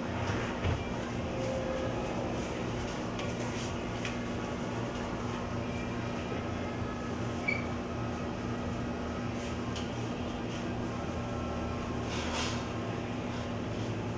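A meat slicer's motor hums steadily as its blade spins.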